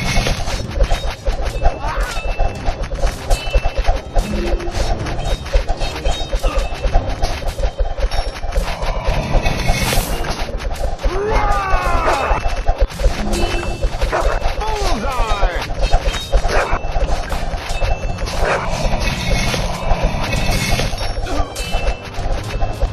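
Game soldiers clash with swords in rapid clicks.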